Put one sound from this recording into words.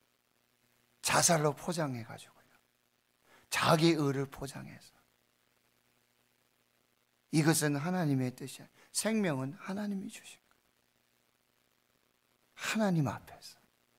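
A middle-aged man speaks with emphasis into a microphone, pausing between phrases.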